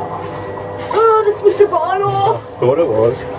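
An animatronic ghoul lets out an eerie, wavering moan through a loudspeaker.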